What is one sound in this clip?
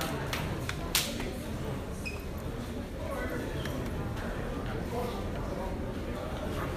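A crowd of men and women chatter all around in a large room.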